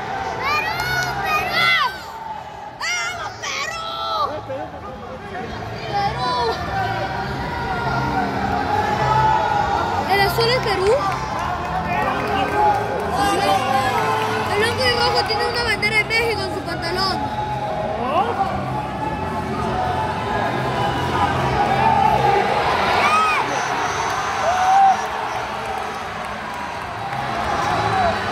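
A crowd of spectators shouts and cheers in a large echoing arena.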